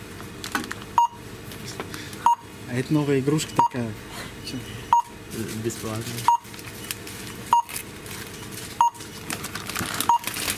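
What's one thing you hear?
A barcode scanner beeps at a steady, regular pace.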